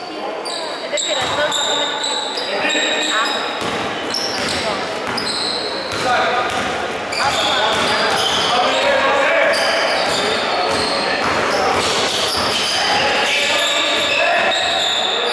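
Spectators murmur and call out from the sidelines.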